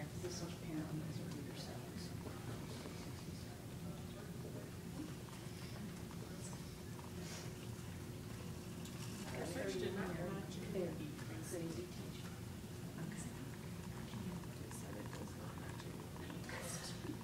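Several women talk quietly among themselves in the background.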